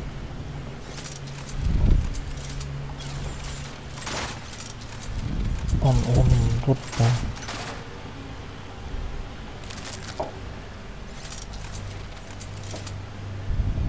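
A gun clicks and clatters as it is handled.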